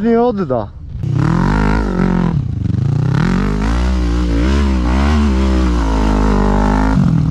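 A quad bike engine revs up and down.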